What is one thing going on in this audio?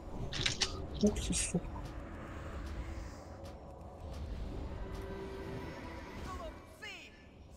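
Magic spells crackle and hum in a game battle.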